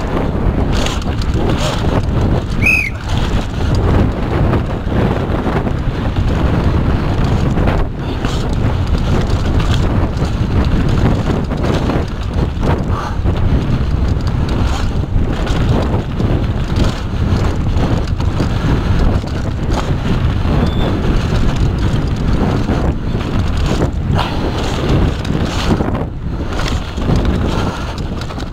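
Tyres of a downhill mountain bike rumble and rattle over a dirt trail at speed.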